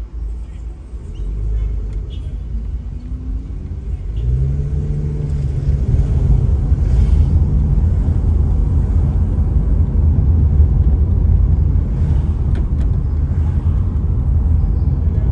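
Road rumble grows louder as the car speeds up.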